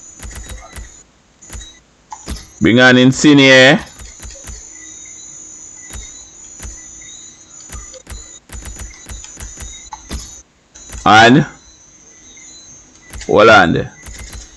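Short electronic menu clicks tick as a selection moves from item to item.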